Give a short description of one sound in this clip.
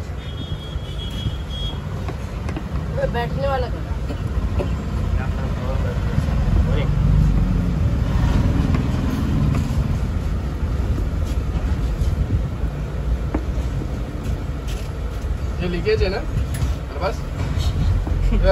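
A cloth rubs against a metal tube.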